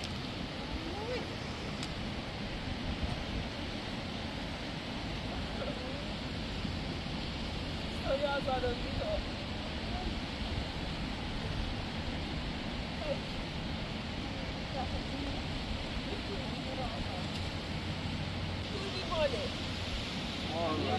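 A woman speaks close by, outdoors.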